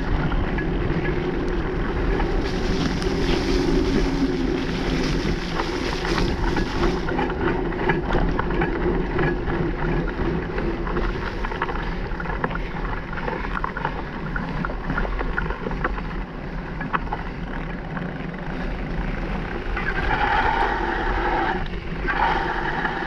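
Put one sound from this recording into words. Wind rumbles against the microphone while riding.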